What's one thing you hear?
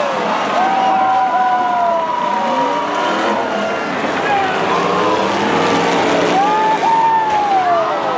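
Race car engines roar and rev loudly as they drive by.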